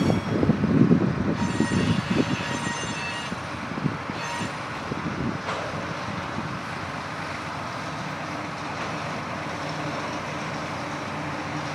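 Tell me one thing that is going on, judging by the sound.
Steel wheels clatter on the rails.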